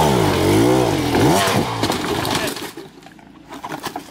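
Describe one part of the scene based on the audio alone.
A dirt bike crashes onto rocks and mud.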